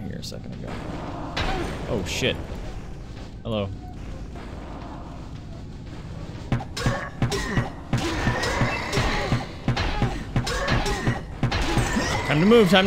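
Fiery spell blasts whoosh and burst in a game.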